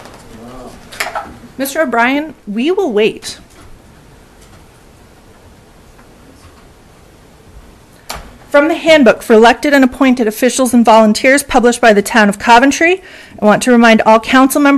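A young woman speaks calmly into a microphone, pausing now and then.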